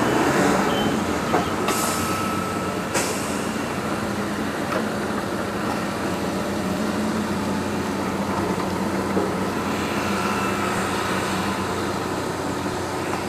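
A heavy machine's engine drones steadily in the distance.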